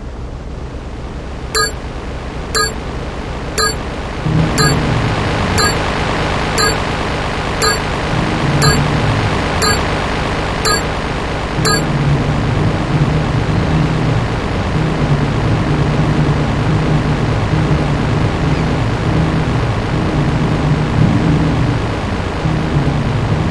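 Water splashes against a speeding boat's hull.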